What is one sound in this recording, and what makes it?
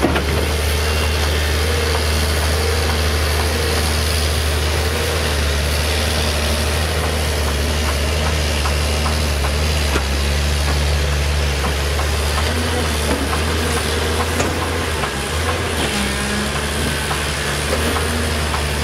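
Rocks and dirt clatter as an excavator bucket scoops and dumps.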